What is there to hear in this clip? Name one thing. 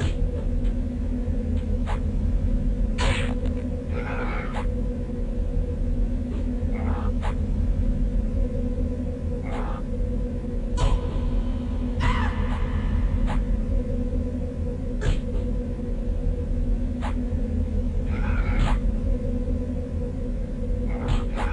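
Blades clash and strike in a fight, again and again.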